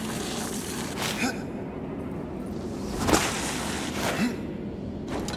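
A man grunts with effort.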